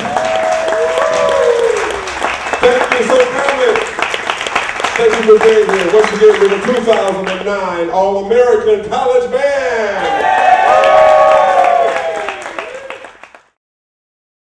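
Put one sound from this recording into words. A man sings into a microphone with the band.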